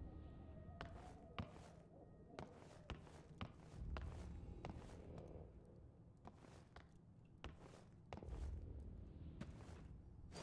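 Footsteps thud steadily on a wooden floor and stairs indoors.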